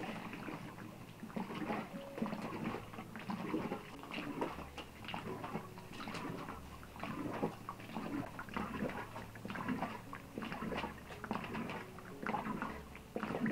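Hands rub and pat a stuffed animal skin with a soft rustling.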